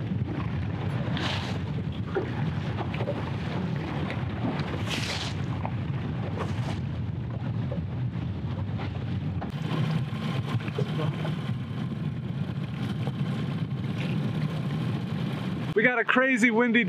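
Waves lap against a boat's hull.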